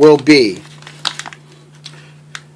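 A plastic package crinkles in a hand.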